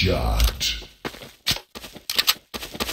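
A weapon reloads with metallic clicks.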